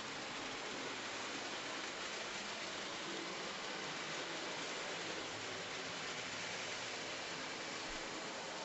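A model train whirs steadily along its track.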